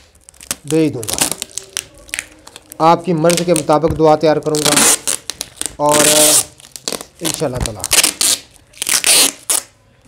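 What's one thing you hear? Packing tape screeches as it is pulled off a roll.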